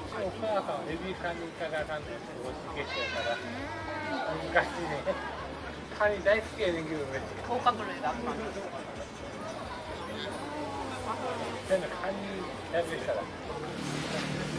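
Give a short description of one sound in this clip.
A middle-aged man talks close by.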